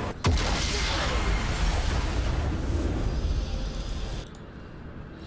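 A game's victory fanfare plays loudly.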